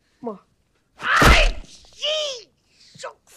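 A man cries out loudly.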